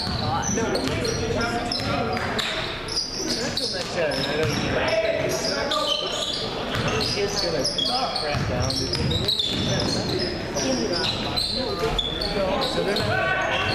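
Young players shout and call out to one another in an echoing gym.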